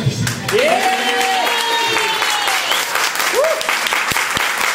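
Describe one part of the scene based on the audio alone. People in a crowd cheer and whoop.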